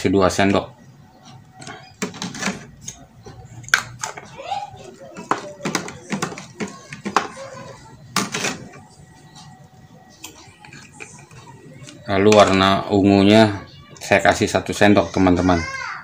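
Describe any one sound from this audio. A metal spoon scrapes and clinks against a plastic tub.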